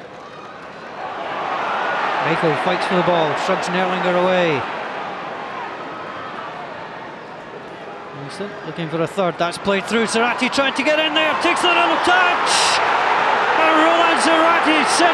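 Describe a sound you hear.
A large stadium crowd roars and cheers, swelling loudly.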